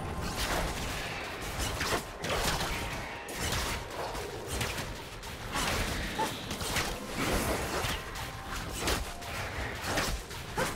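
Spell effects whoosh and crackle in quick bursts.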